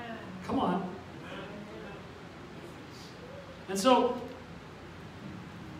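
A middle-aged man speaks slowly into a microphone in a room with some echo.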